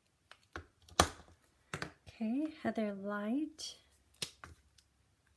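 A plastic marker cap clicks off and on.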